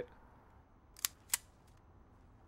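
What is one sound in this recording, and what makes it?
A pistol clicks sharply twice.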